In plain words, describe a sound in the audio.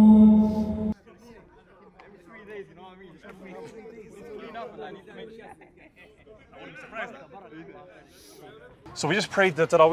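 Several men talk quietly together outdoors.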